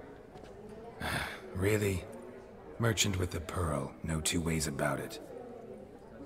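A man speaks in a low, gravelly voice, close by.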